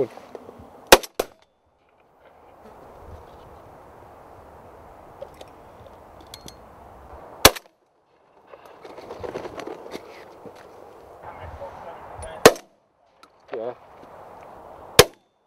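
A shotgun fires loudly several times outdoors.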